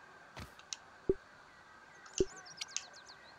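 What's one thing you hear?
Soft electronic clicks sound as a menu opens.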